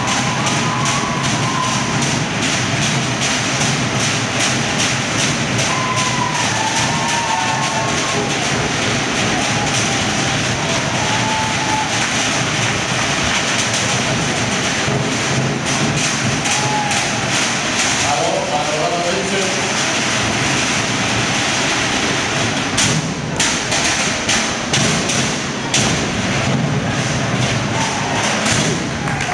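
A crowd cheers and whistles loudly throughout.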